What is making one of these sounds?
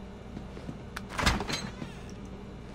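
A refrigerator door is pulled open with a thud.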